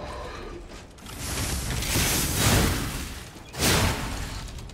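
Fire roars in loud bursts.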